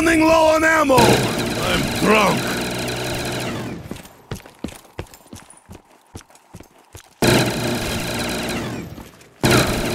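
A heavy machine gun fires in long bursts.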